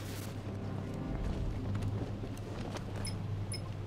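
Heavy footsteps run across a hard floor.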